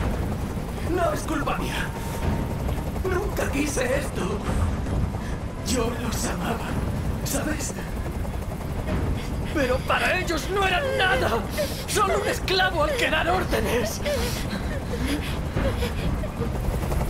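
A man speaks tensely and threateningly, close by.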